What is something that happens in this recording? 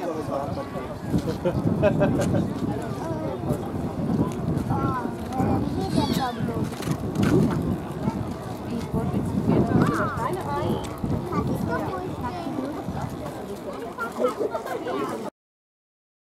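A crowd of adults and children chatters outdoors nearby.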